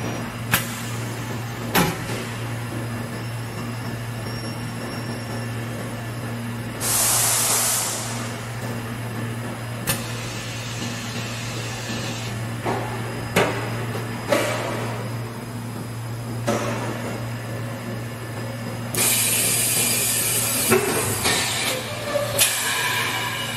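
Metal parts clank and click inside a machine.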